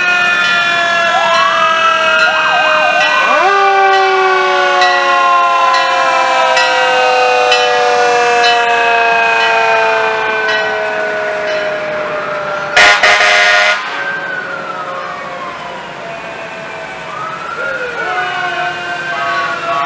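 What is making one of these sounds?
Fire engine sirens wail and glide up and down nearby.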